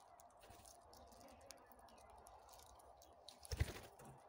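Parrot claws click and scratch on a plastic cup.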